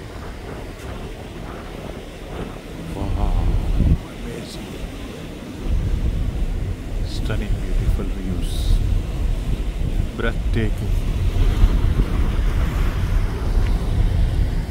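Wind gusts across the open deck of a moving ferry.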